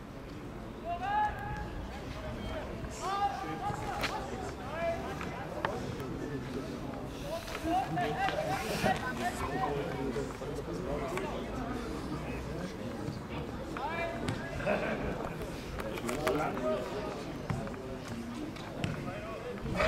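Young men shout and call to each other from a distance outdoors.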